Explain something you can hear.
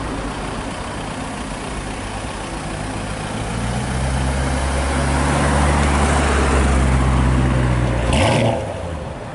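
A sports car engine rumbles deeply as it drives slowly past close by.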